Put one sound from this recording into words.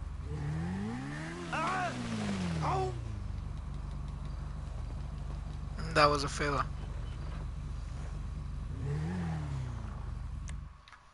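A motorcycle engine idles and revs up and down.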